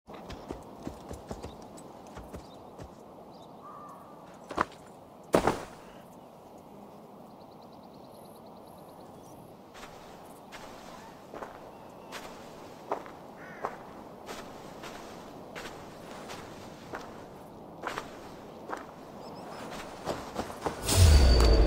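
Footsteps crunch softly over grass.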